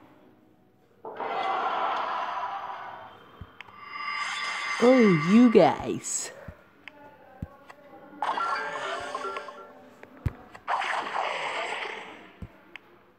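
Video game sound effects whoosh and chime during a battle.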